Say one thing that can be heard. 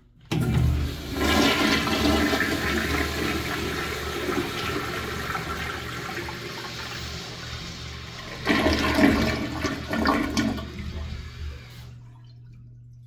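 A toilet flushes with a loud rush of swirling water.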